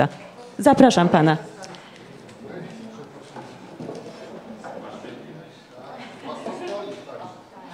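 People murmur and talk quietly in a room.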